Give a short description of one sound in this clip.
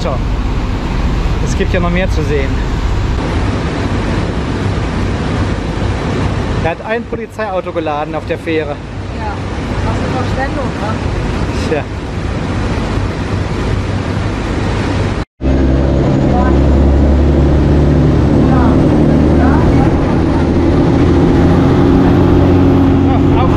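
Wind buffets the microphone outdoors.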